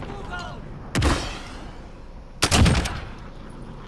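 A rifle fires two loud, sharp shots.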